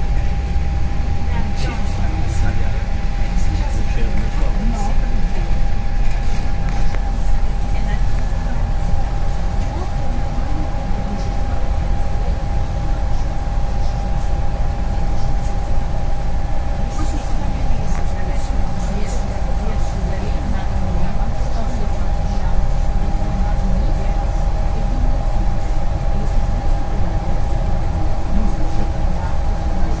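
Tyres hum on the road.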